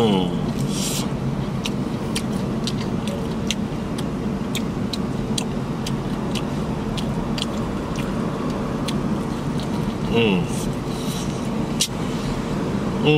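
A man bites and chews crispy fried chicken with loud, wet crunches up close.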